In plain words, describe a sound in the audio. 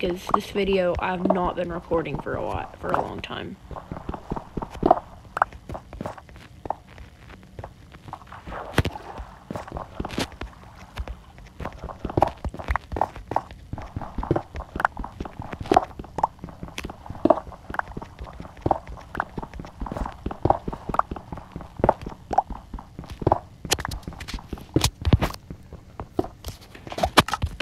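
Blocks of stone crack and crumble with quick, repeated digging knocks.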